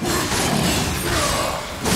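A fiery burst crackles.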